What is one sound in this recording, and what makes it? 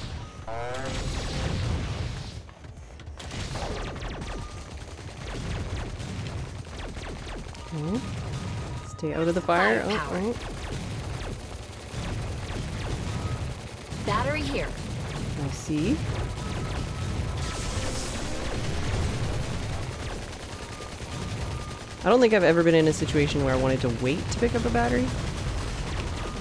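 Explosions burst again and again.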